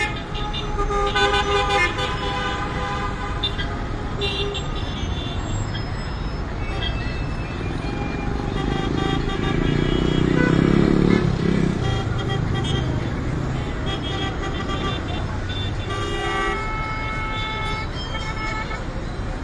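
Heavy traffic rumbles steadily along a busy road outdoors.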